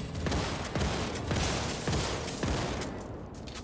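Gunfire bursts out in loud rapid shots.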